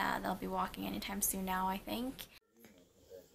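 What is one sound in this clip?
A young woman speaks calmly and close.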